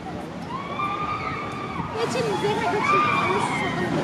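A roller coaster train rumbles and roars along its track.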